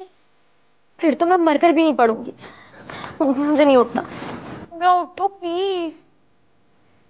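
A young woman speaks close by with emotion.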